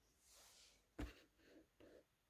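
A hardcover book closes and is set down with a soft thud.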